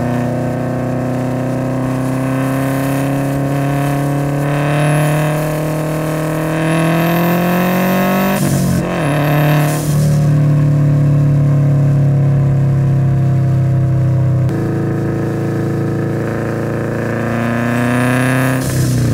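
A car engine hums as a car drives slowly along a road.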